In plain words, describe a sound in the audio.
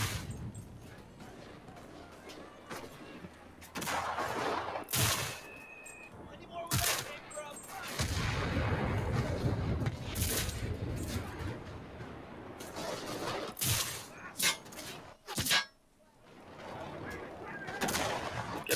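Gunfire and explosions rumble.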